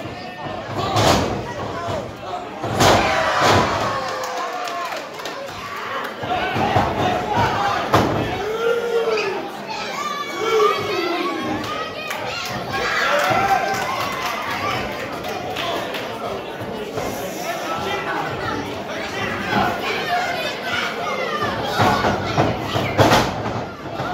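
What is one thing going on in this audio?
Bodies slam onto a wrestling ring mat with loud thuds.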